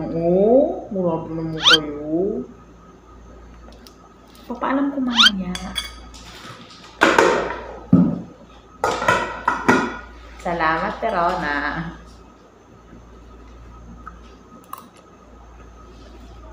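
A spoon scrapes and clinks against a glass bowl.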